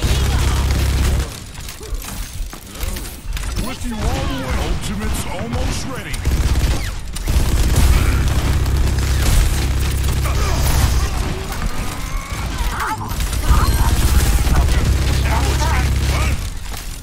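Heavy guns fire in rapid, rattling bursts.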